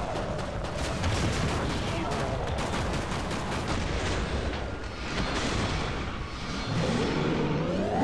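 Explosions boom and roar.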